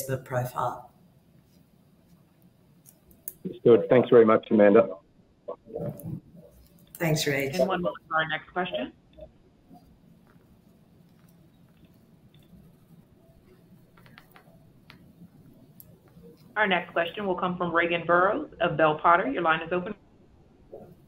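A middle-aged woman speaks calmly over an online call, with pauses.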